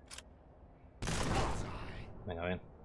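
A gun fires a single loud shot.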